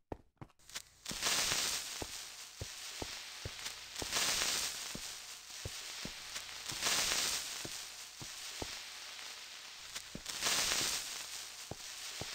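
Blocks of snow are dug with scraping crunches.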